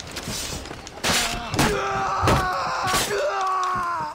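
Blades clash with sharp metallic rings.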